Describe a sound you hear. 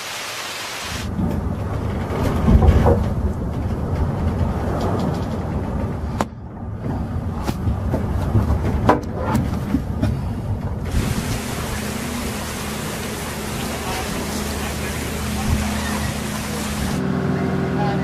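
Waves crash against a boat.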